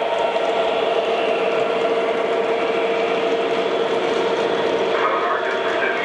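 Model trains rumble and whir steadily along the tracks.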